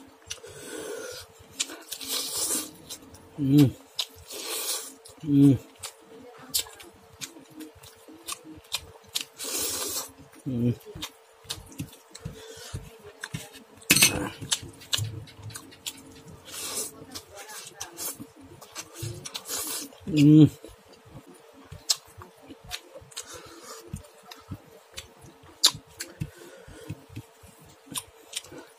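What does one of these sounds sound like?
Fingers tear and squish soft fried egg.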